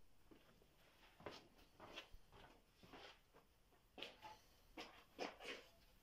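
A wooden board knocks and thuds as it is handled.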